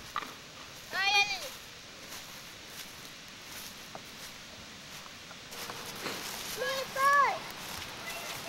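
Young children shout and call out in high voices outdoors.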